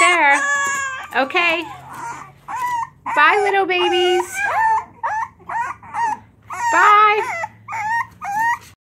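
Puppies whine and yelp in high, squeaky cries close by.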